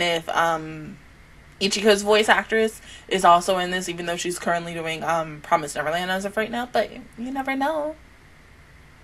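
A young woman sings closely into a microphone.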